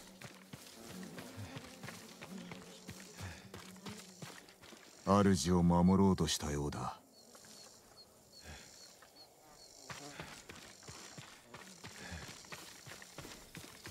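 Footsteps crunch softly on grass and dirt.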